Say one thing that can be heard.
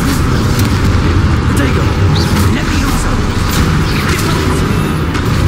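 Magic spells zap and crackle in quick bursts.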